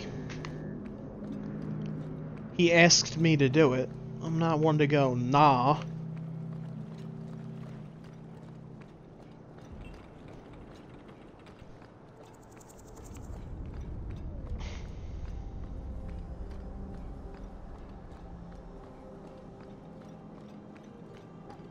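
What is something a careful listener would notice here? Footsteps thud on stone as an armoured figure runs.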